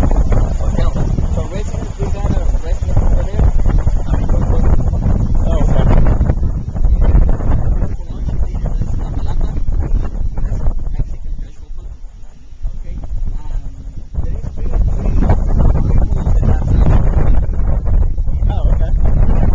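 Wind blows hard and buffets the microphone outdoors.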